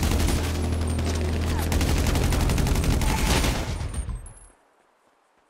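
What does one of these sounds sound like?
Rapid gunfire rattles loudly in quick bursts.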